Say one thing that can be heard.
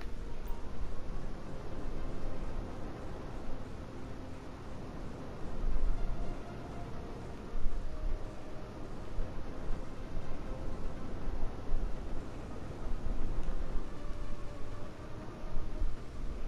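A jet-powered motorcycle roars steadily as it flies.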